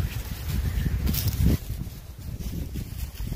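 Leafy branches rustle as they brush past close by.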